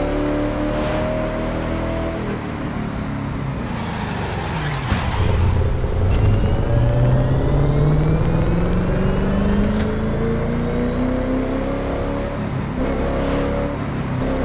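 Tyres hiss on asphalt at high speed.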